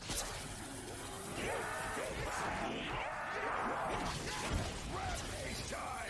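Monsters growl and snarl in a crowd.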